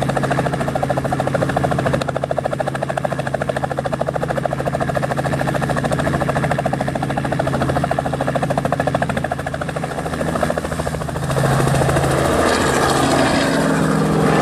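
A helicopter's engine whines loudly.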